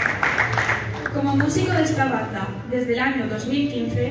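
A young woman speaks calmly into a microphone over a loudspeaker.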